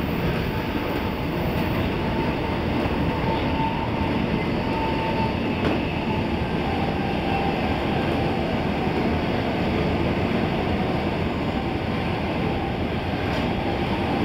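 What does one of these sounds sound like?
A train rumbles steadily along the tracks from inside the cab.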